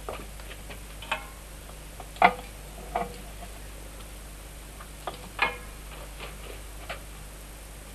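A wooden stick knocks against a metal pot.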